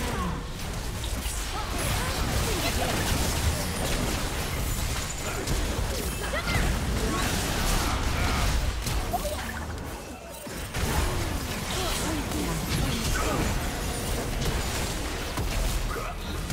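Spell blasts and clashing weapons from a video game battle sound over and over.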